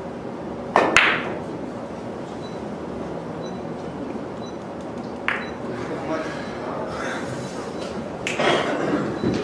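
Billiard balls clack against each other on the table.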